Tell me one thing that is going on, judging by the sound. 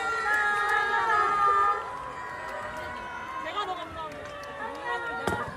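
Pop music with women singing plays loudly over loudspeakers.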